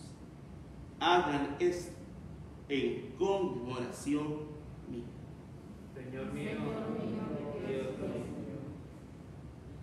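A man prays aloud calmly through a microphone.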